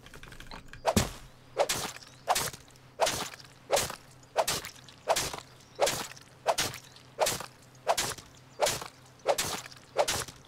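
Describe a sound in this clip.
A blade chops into flesh in quick, even strokes.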